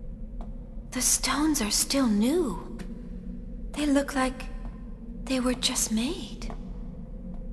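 A young woman speaks calmly and softly, as if wondering aloud.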